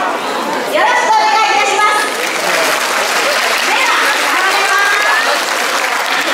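An elderly woman speaks with animation into a microphone, heard through loudspeakers in a large echoing hall.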